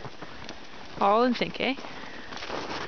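A horse neighs loudly.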